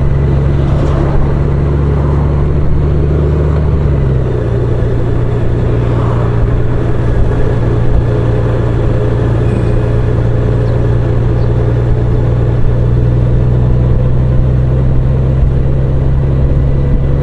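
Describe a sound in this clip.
Wind rushes past a motorcycle rider.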